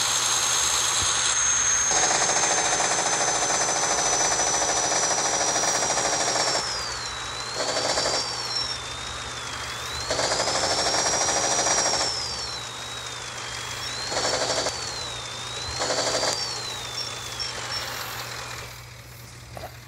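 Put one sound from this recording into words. A truck engine roars, with a whine that rises and falls as it revs.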